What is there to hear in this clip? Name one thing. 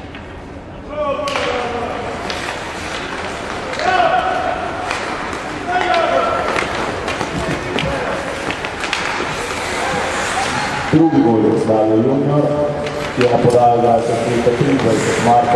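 Spectators nearby cheer and shout from the stands.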